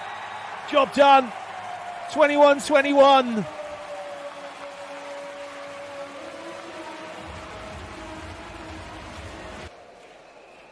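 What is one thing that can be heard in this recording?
A large crowd cheers in an echoing hall.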